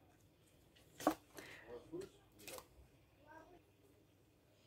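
Playing cards riffle and snap as a deck is shuffled.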